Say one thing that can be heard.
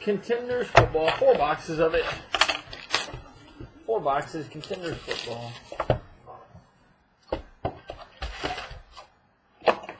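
Cardboard packaging rustles and scrapes as it is handled.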